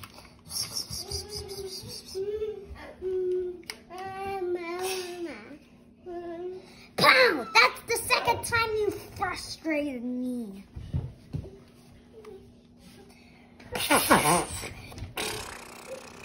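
A young boy talks nearby with animation.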